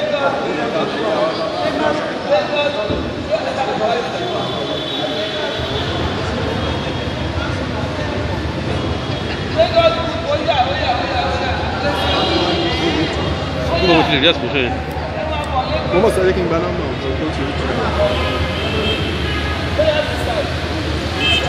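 A crowd of adult men and women chatters and calls out nearby in a busy room.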